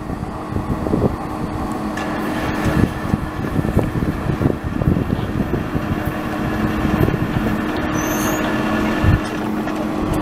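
A freight train rumbles and clatters along the tracks, drawing closer.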